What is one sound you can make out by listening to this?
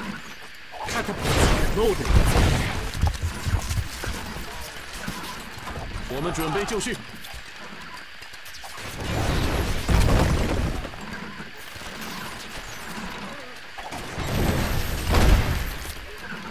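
Heavy impacts boom in bursts amid a battle.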